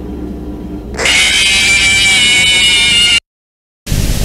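A loud, harsh electronic screech blares.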